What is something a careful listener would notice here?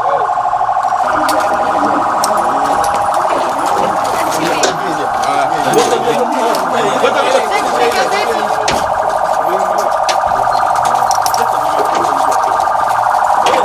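Several men talk and shout over each other in a jostling crowd close by.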